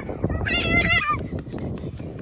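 A toddler squeals excitedly close by.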